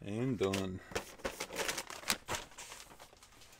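A plastic mailer bag crinkles and rustles.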